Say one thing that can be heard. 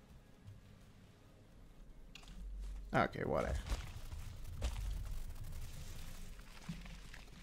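Footsteps tread softly over grass.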